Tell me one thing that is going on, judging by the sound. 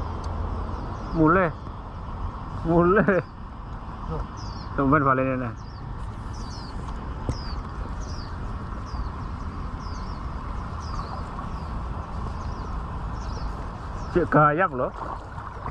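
Water sloshes as a man wades through a shallow river.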